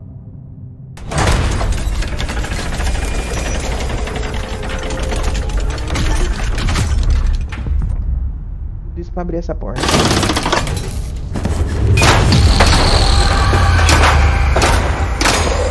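Large metal gears grind and clank.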